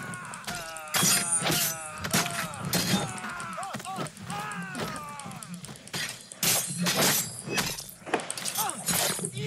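Blades clash and thud sharply in a fight.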